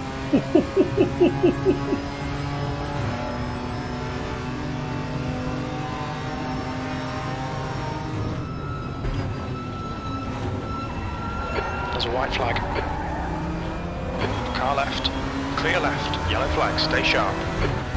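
A race car engine roars steadily, rising and falling in pitch as the car shifts gears.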